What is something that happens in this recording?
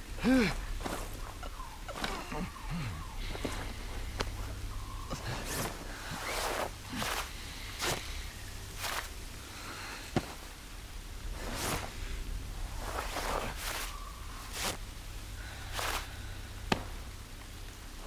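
Leaves rustle and crunch as a man crouches and digs in the undergrowth.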